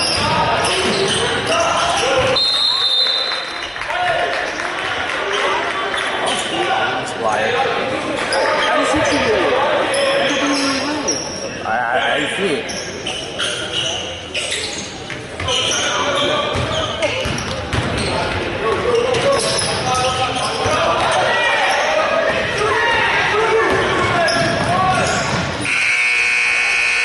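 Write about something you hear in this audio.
Sneakers squeak on a hardwood court in a large echoing gym.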